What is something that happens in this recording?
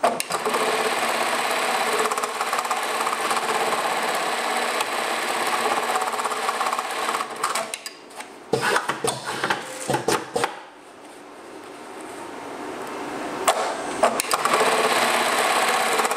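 A sewing machine stitches rapidly with a fast, steady clatter.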